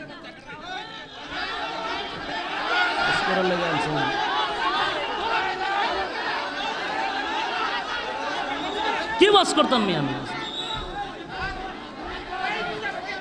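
A large crowd murmurs and chatters.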